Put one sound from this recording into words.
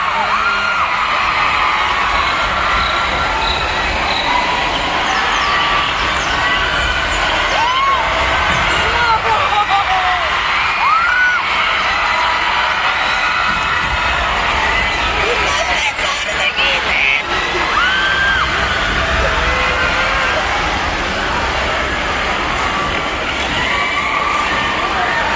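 Young women in the crowd shriek with high, rising cries.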